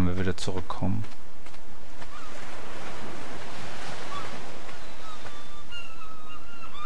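Footsteps rustle through dense leafy plants.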